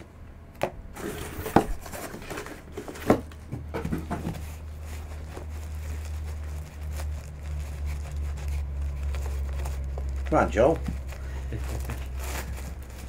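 A plastic wrapper crinkles as hands unwrap a package.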